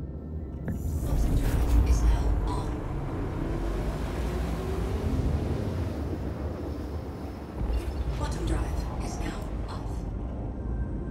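A spaceship engine hums low and swells to a roar.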